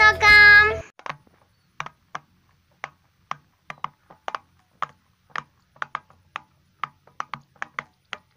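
Fingers press silicone bubbles on a fidget toy, making soft, sharp pops at an uneven pace.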